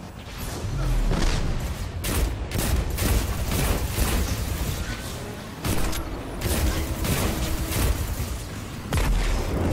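Gunfire from a video game rifle fires in rapid bursts.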